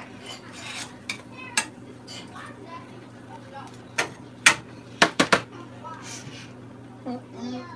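Food sizzles faintly in a hot pan.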